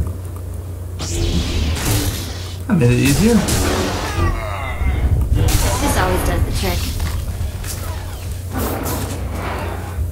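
A lightsaber hums and swishes through the air.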